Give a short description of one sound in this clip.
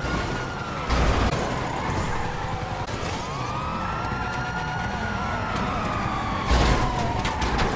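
A car slams into a wall with a loud crash.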